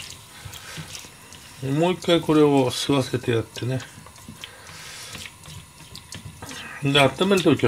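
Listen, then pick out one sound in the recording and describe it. Food sizzles and scrapes in a frying pan as it is stirred.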